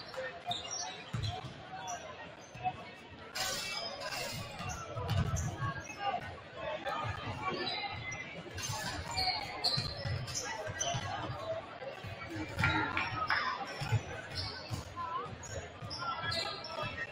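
Basketballs bounce on a wooden court in a large echoing gym.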